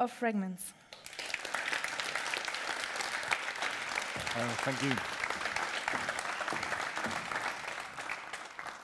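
An audience applauds steadily in a large room.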